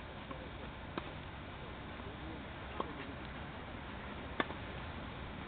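A tennis ball is struck with a racket, with sharp pops.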